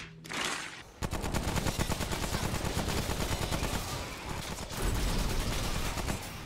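Guns fire rapidly.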